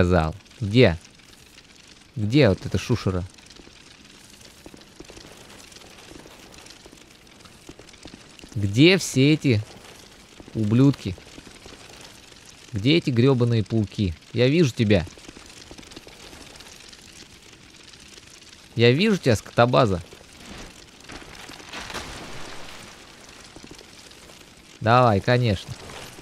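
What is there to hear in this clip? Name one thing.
A young man speaks in short bursts close to a microphone.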